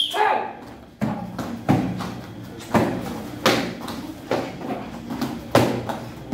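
Kicks smack loudly and repeatedly against a padded target.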